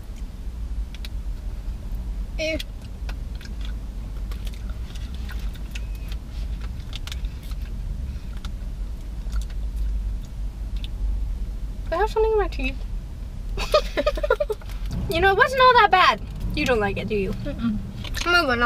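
Candy wrappers crinkle and rustle.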